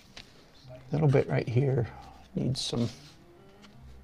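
A marker pen scratches softly across paper.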